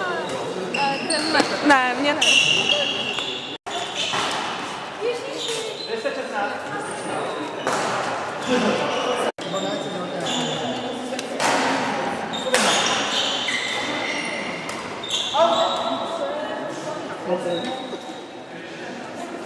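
Voices of several people echo around a large hall.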